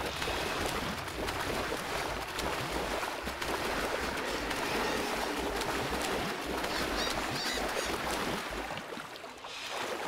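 Water splashes and laps as a swimmer moves through it.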